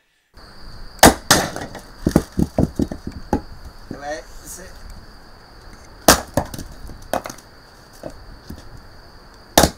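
An axe splits wood with sharp cracks.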